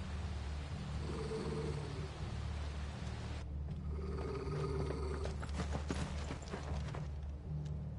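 A dog growls low and menacingly.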